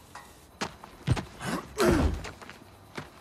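A heavy plastic case thuds down on the ground.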